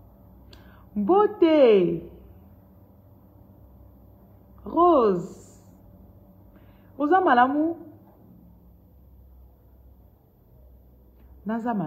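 A woman speaks close up in short, animated bursts with pauses between them.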